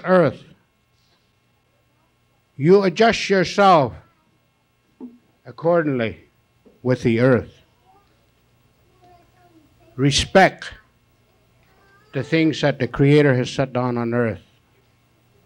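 An elderly man sings with feeling into a microphone, in short phrases with pauses.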